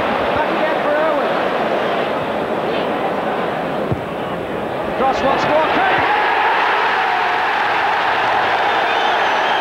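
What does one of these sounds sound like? A large stadium crowd roars and cheers, swelling louder.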